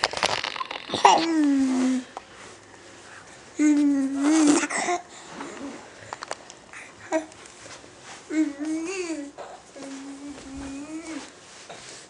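A toddler squeals and babbles loudly in long, high vocal calls close by.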